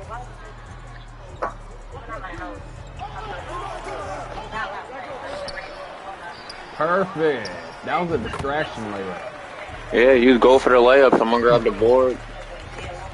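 A crowd murmurs in a large arena.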